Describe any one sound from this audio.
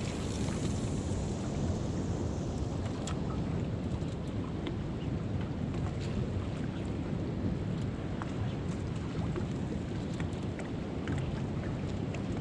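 Wind blows steadily across the open sea.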